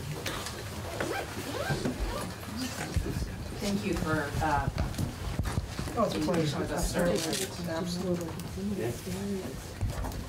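Footsteps and rustling come from people moving about a room.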